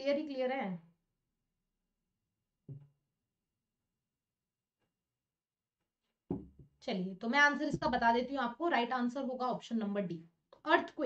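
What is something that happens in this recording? A young woman speaks calmly into a close microphone, with pauses.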